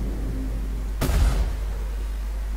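Laser guns fire in sharp bursts.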